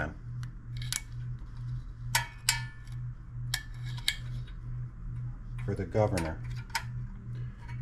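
A screwdriver clicks and taps against metal engine parts.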